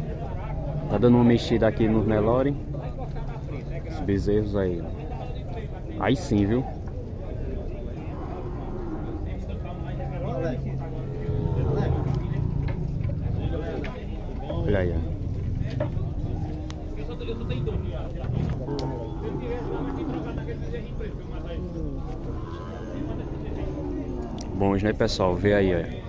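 Cattle moo loudly.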